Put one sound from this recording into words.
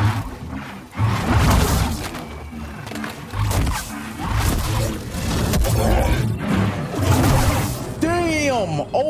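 Energy blades hum, swing and clash loudly.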